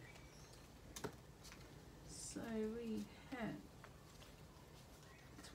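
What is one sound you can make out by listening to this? Paper banknotes rustle and crinkle in a hand.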